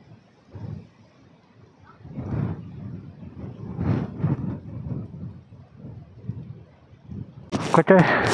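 Wind gusts against the microphone outdoors.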